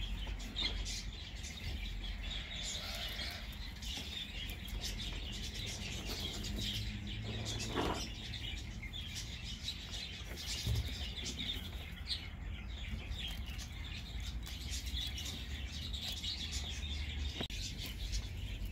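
Dry straw rustles softly under a rabbit.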